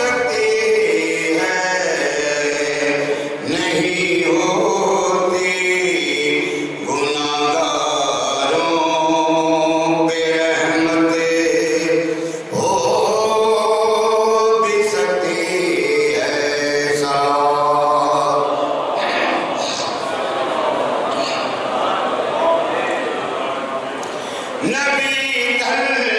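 An elderly man chants in a long, mournful melody through a microphone and loudspeakers.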